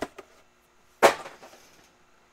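A stack of cards knocks down onto a table.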